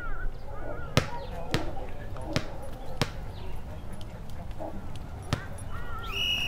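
A ball is struck again and again with sharp thumps.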